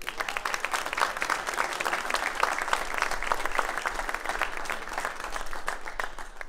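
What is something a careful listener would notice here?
A crowd claps loudly in steady applause.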